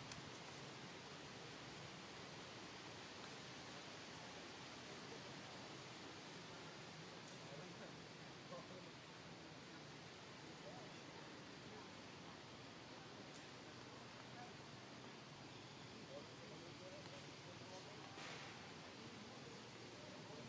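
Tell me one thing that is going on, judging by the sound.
Monkeys shift about on tree branches, making the leaves rustle softly.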